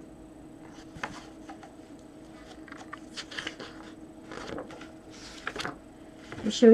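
Book pages rustle and flip.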